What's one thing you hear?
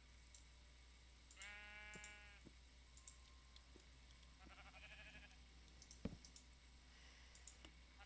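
Soft, quick clicks sound now and then.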